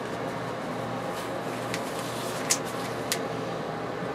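Small hard clicks sound as a hand handles an airbrush.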